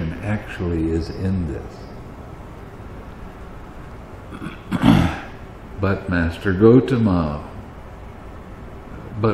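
An elderly man speaks calmly into a microphone, reading aloud with pauses.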